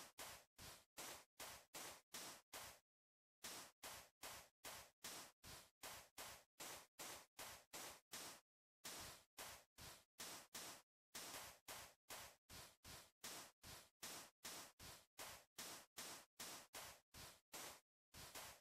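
Footsteps crunch steadily on sand at a quick walking pace.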